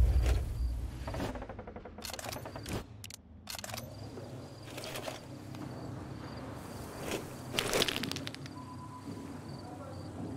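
A rifle fires sharp single shots close by.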